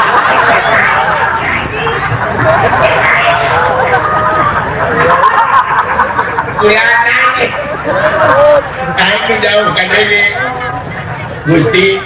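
A crowd of people chatters loudly nearby.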